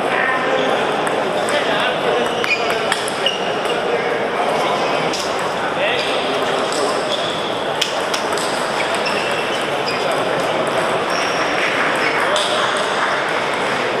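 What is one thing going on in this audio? Table tennis balls click on paddles and tables.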